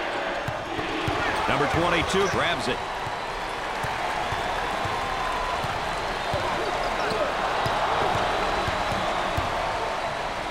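A large crowd cheers and murmurs steadily in an echoing arena.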